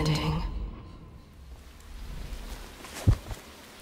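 Water laps gently against a stone wall.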